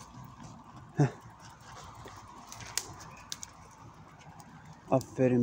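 A person walks over dry pine needles.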